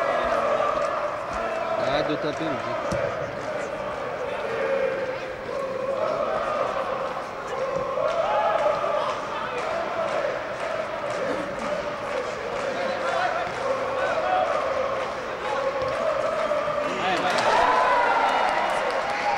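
A crowd of spectators talks and chants nearby.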